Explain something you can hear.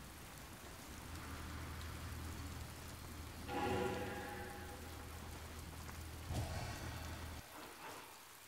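A whirlwind roars and swirls.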